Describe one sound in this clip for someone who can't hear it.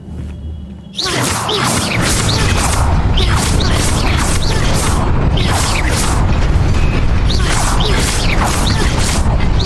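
Magic spells crackle and zap repeatedly.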